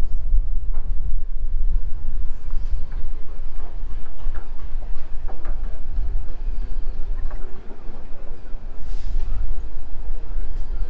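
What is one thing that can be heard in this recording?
Wind buffets outdoors with a low rumble.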